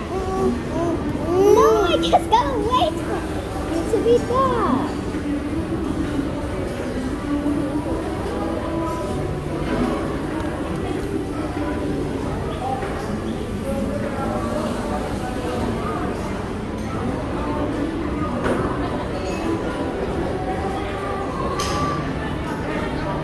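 A spoon scrapes and taps inside a plastic cup.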